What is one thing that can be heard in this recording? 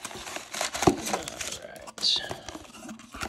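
Paper crinkles and rustles as it is pulled from a cardboard box.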